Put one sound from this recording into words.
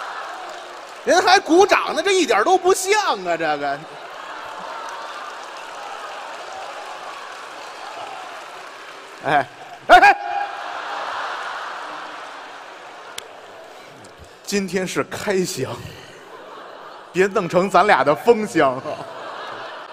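A second middle-aged man answers loudly and cheerfully through a microphone.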